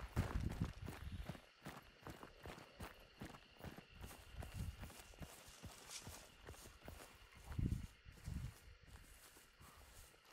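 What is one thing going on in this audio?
Tall grass swishes against moving legs.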